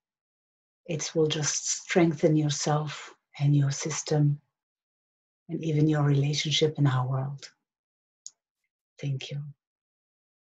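A woman speaks calmly and softly, close to a microphone.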